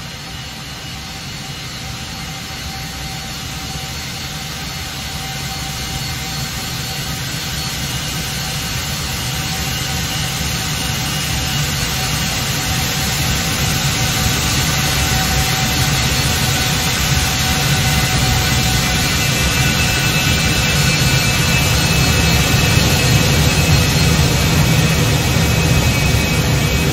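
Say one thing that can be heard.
Jet engines whine steadily as a plane taxis, growing louder.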